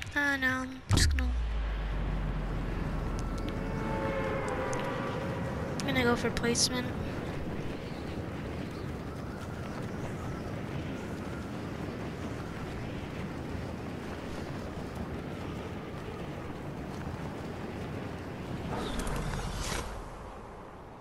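Wind rushes loudly and steadily past during a fast fall through the air.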